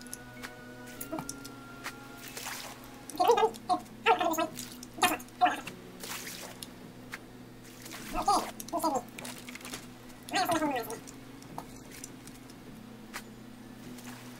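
Water laps gently all around.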